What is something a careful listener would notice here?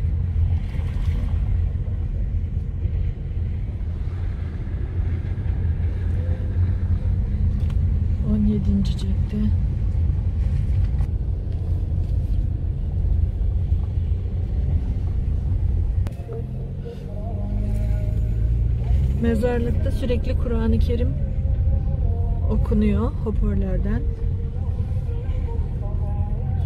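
A car engine hums steadily while driving slowly.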